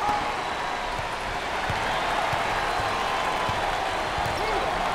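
A basketball bounces repeatedly on a hardwood floor.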